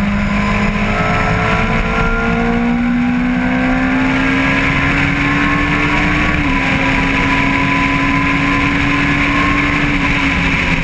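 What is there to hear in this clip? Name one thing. A motorcycle engine roars at high revs, rising in pitch as it accelerates.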